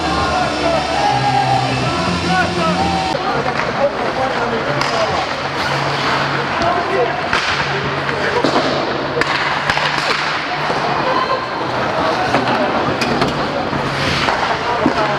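A crowd of spectators murmurs and chatters in an echoing rink.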